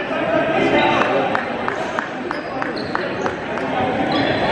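A basketball bounces in steady dribbles.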